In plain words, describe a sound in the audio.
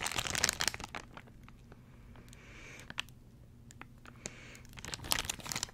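A plastic wrapper crinkles loudly close to a microphone.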